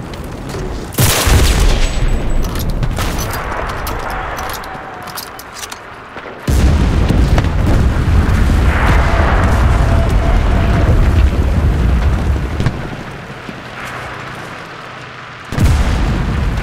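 Loud gunshots boom and echo across open ground.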